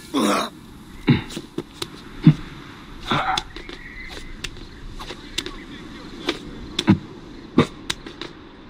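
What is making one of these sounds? Footsteps scrape and thud on stone while climbing.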